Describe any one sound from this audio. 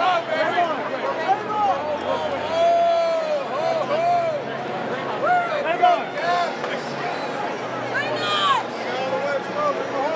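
Men shout and whoop close by.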